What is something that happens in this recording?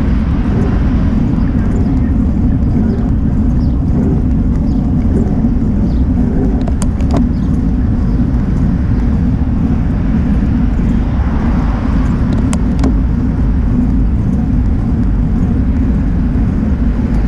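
Tyres hum on smooth asphalt.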